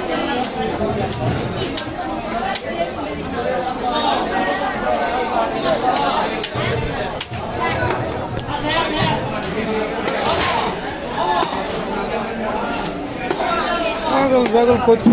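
A large knife slices through fish flesh and taps on a wooden block.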